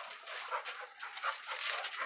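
A dog pants close by.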